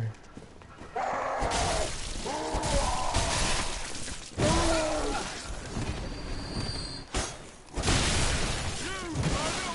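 Blades clash and slash in a game fight.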